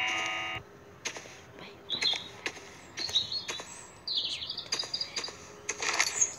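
Footsteps crunch on grass and wooden steps.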